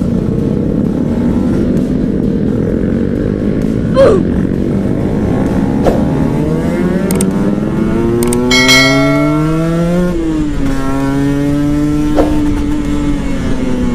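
A motorcycle engine hums steadily at close range and rises in pitch as it speeds up.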